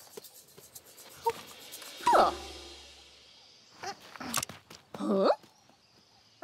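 A monkey chatters and squeaks.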